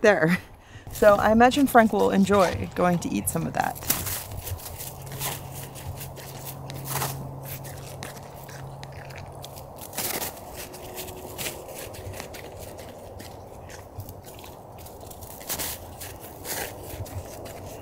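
A dog sniffs and snuffles in snow close by.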